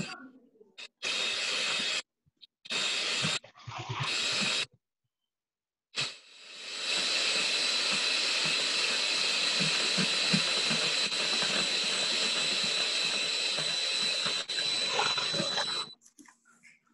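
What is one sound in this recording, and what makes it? An electric hand mixer whirs steadily as its beaters whisk a liquid in a metal bowl.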